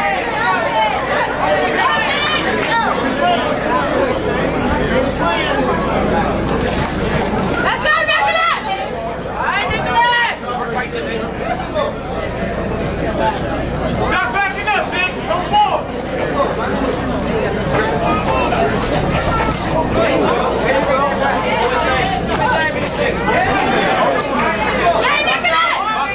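Boxing gloves thud against each other and the body in quick punches.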